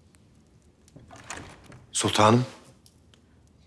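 A man speaks briefly in a low, calm voice close by.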